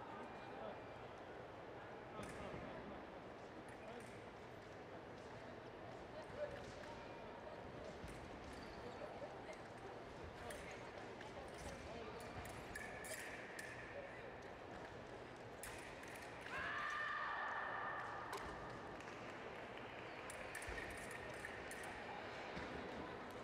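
Fencers' footsteps tap and shuffle on the piste.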